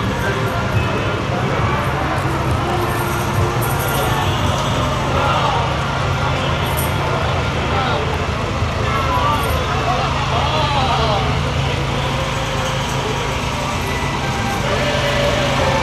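A crowd of people chatter outdoors along a street.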